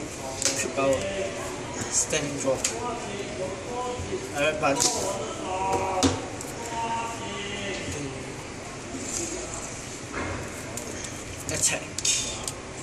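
Playing cards slap and slide onto a cloth mat.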